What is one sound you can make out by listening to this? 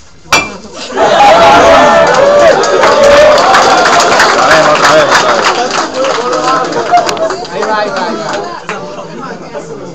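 Several young people laugh and talk loudly together.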